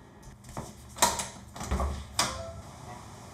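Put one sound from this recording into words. A door handle rattles and a door clicks open.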